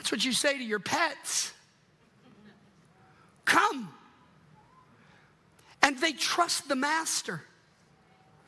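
A middle-aged man speaks with animation through a microphone, pausing between phrases.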